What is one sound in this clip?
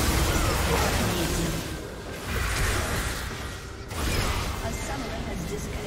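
Game spells and attacks crash and blast loudly.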